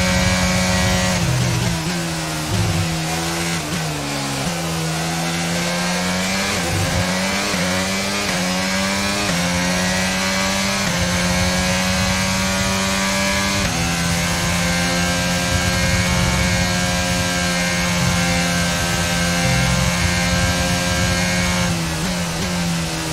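A racing car engine screams at high revs, dropping in pitch when braking and climbing again through the gears.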